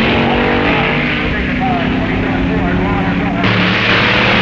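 A race car engine roars loudly as the car speeds away.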